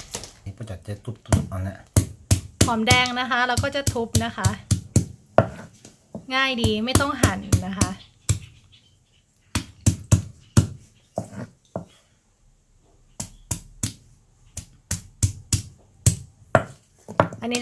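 A stone pestle pounds on a wooden board with dull thuds.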